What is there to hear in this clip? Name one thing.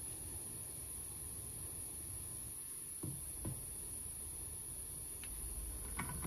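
A liquid pours into a glass cup.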